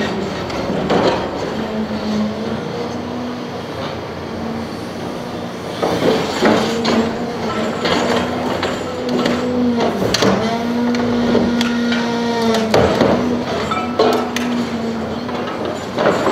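An excavator engine hums steadily.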